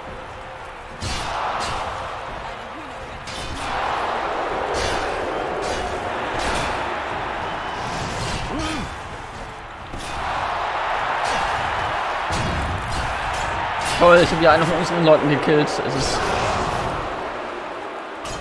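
Magic spells whoosh and roar.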